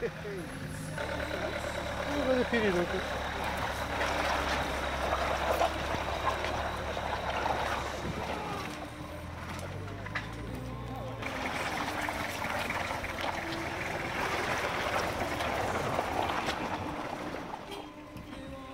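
An engine revs hard as a four-wheel drive climbs a muddy slope.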